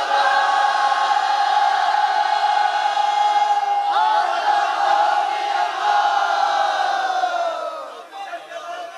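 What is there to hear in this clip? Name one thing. A crowd chants in long, drawn-out tones.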